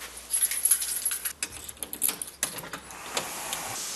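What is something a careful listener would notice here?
A door handle clicks as it turns.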